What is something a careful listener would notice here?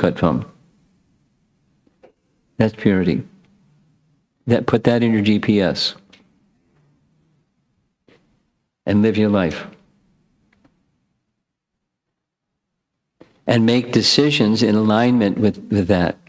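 An elderly man speaks calmly and with animation into a close microphone, pausing between phrases.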